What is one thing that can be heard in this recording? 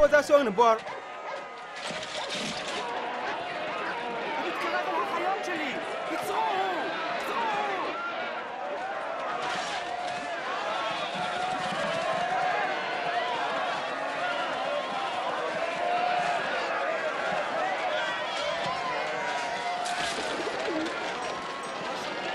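A crowd of men and women clamours and shouts in commotion.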